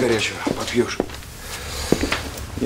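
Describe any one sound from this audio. Objects knock and rustle as a man rummages on a shelf.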